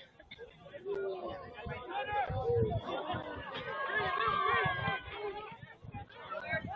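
Young players shout and call to each other across an open field, heard from a distance.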